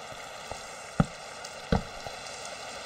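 A wooden block is placed with a knock.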